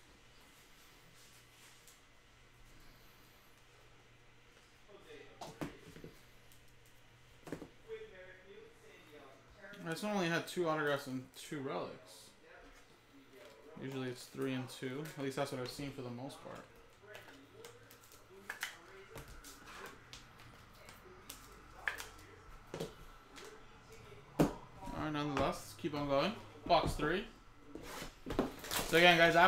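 Plastic card cases click and tap together.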